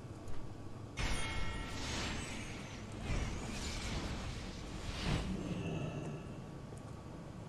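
Wind rushes steadily past a flying creature.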